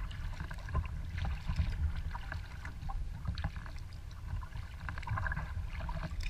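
Wind rumbles across the water outdoors.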